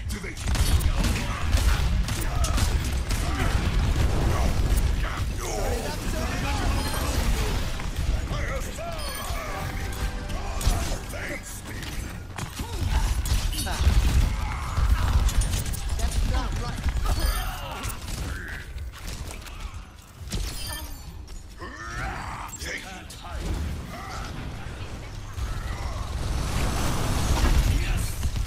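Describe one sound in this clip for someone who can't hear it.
Rapid gunfire and blasts from a video game ring out throughout.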